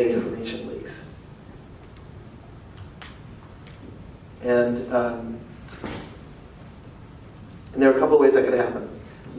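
A man speaks calmly into a microphone in a large echoing room.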